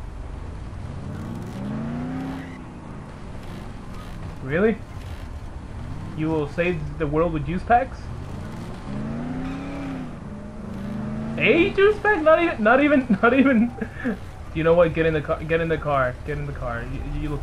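A car engine hums and revs as the car drives along.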